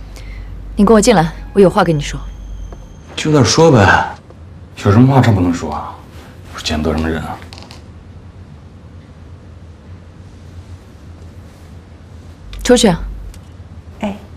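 A young woman speaks firmly and coolly, close by.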